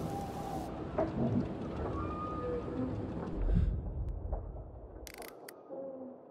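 Wind blows outdoors through trees.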